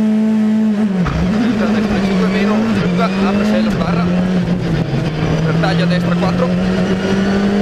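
A rally car accelerates away, its engine rising and dropping through gear changes.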